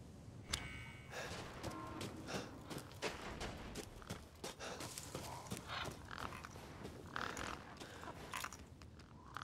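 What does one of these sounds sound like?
Footsteps crunch through snow.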